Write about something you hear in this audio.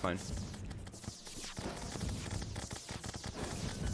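Rapid game combat hits and zaps sound in quick succession.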